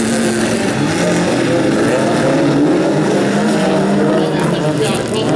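Tyres skid and scatter gravel on a dirt track.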